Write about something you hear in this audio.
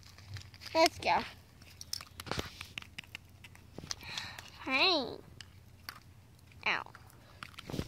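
Small toys scrape and click on loose gravel.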